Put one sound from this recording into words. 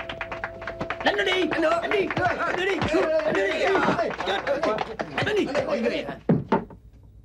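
Several men shout excitedly during a scuffle.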